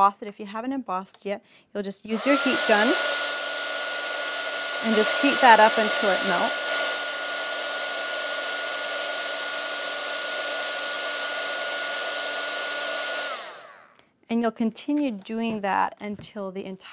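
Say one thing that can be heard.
A young woman talks calmly and clearly into a microphone.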